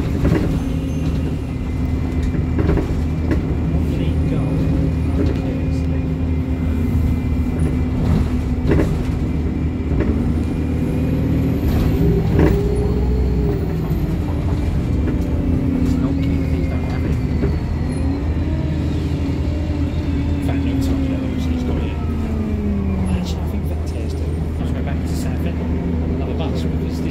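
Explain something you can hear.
Loose fittings rattle and knock on a moving bus.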